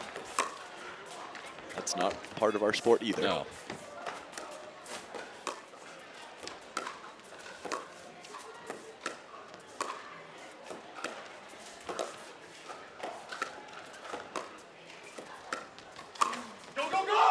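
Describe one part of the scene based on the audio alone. Paddles pop sharply against a plastic ball in a quick rally.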